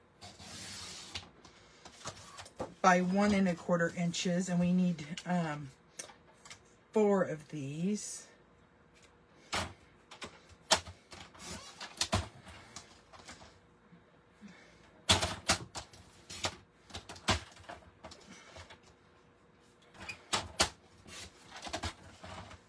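A paper trimmer blade clicks and slides as it cuts card.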